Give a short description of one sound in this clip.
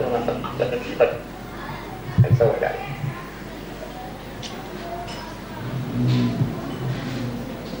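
An elderly man speaks with animation into a microphone.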